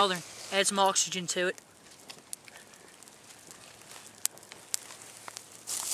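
A small fire crackles and pops in dry leaves.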